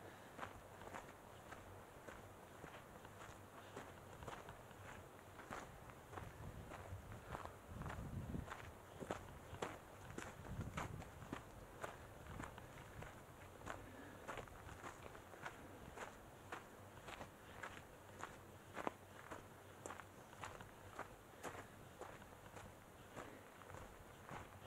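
Footsteps crunch steadily on a dry dirt trail.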